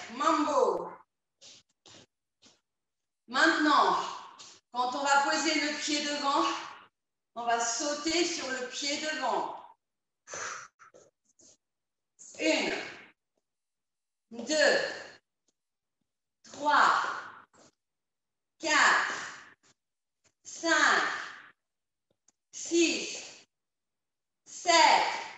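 A young woman calls out energetic instructions in short bursts, close to a microphone.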